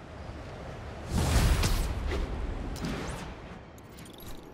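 Wind rushes loudly past during a fast fall.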